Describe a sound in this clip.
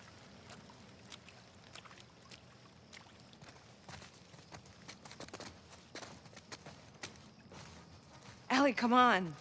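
Footsteps crunch on gravel and leaves.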